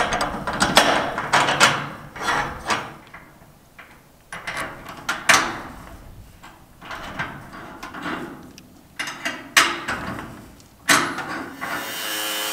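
Metal fittings clink and rattle as they are handled.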